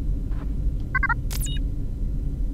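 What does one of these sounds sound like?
A short electronic chime sounds as a menu opens.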